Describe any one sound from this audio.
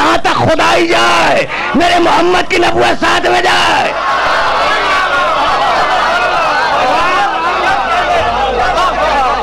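An elderly man speaks forcefully into a microphone, his voice loud and rising.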